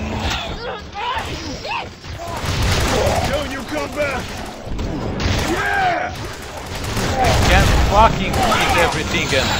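Rapid gunfire rattles.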